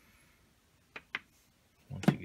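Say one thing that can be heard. Something knocks lightly against a table.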